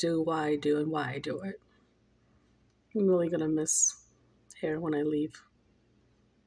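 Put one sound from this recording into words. A middle-aged woman speaks softly and close up, in short bursts with pauses.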